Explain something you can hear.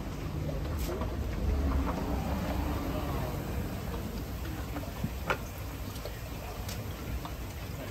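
Water splashes and sloshes in a tank.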